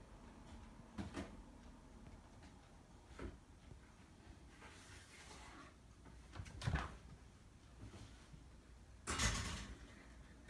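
A cat's paws thump softly as it climbs and jumps up onto furniture.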